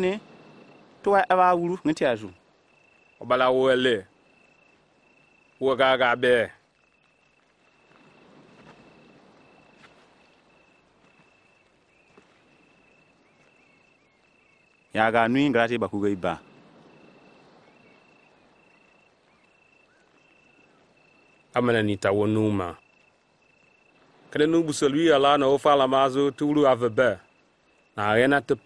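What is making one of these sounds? A man speaks calmly and slowly, close by.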